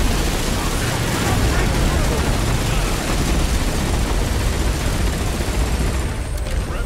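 Heavy gunfire rattles without a break.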